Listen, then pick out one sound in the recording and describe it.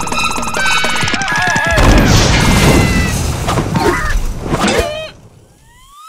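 A cartoon creature screams in a high, squeaky voice.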